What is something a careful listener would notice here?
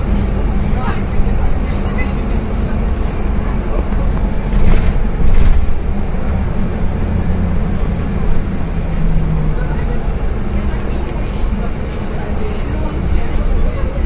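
A bus rattles and creaks as it rolls along a city street.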